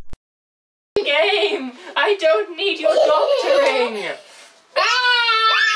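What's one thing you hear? A young girl talks and squeals playfully nearby.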